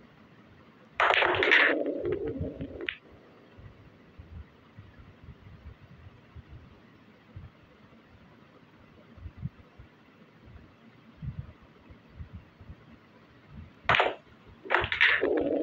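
Pool balls clack together as a shot is struck.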